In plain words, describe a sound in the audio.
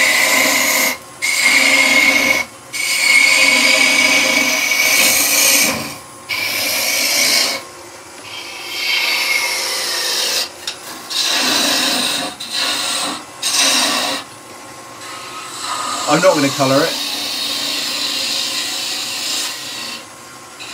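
A chisel scrapes and hisses against spinning wood in bursts.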